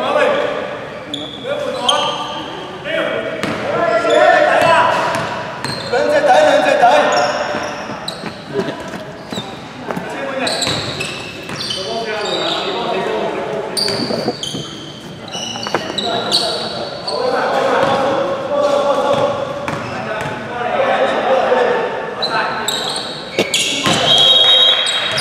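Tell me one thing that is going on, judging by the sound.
Sneakers squeak sharply on a wooden court floor.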